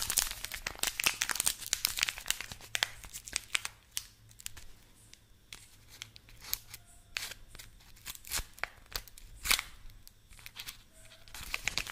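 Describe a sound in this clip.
Small scissors snip and click close to a microphone.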